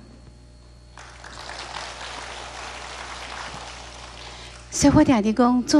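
An audience claps steadily.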